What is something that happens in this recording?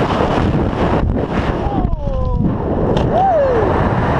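Wind noise suddenly drops as a parachute opens.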